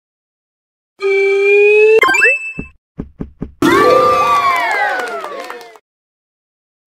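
A short cheerful jingle of chimes plays.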